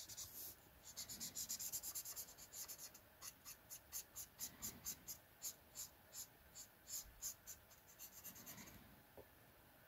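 A marker tip scratches and squeaks rapidly across paper.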